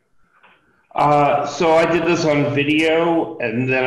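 An older man speaks steadily over an online call.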